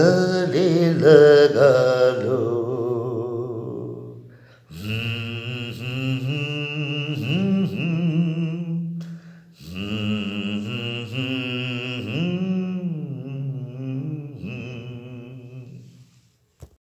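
A man sings close by, drawing out long notes with a slight waver.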